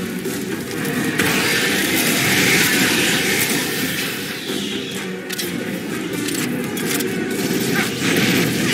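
A flamethrower roars in bursts of fire.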